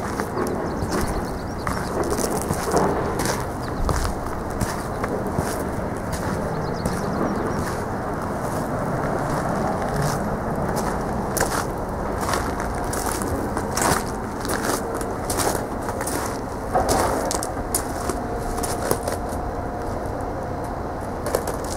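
A large diesel engine idles with a steady, rough rumble.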